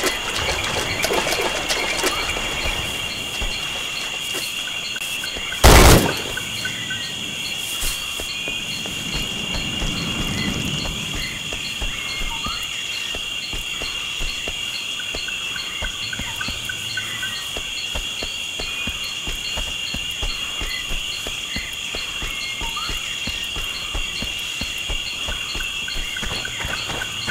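Footsteps tread on a dirt jungle floor.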